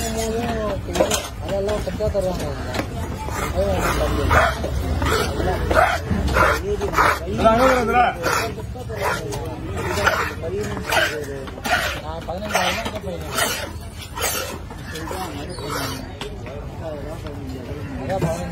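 A heavy knife chops repeatedly on a wooden block.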